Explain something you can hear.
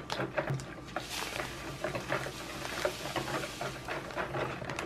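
Powder pours from a paper packet with a soft hiss.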